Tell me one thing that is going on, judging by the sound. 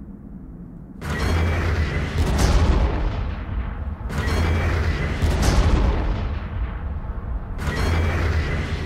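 Gunfire and explosions from a strategy game's battle effects boom in bursts.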